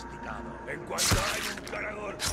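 A blade stabs with a sharp, wet thrust.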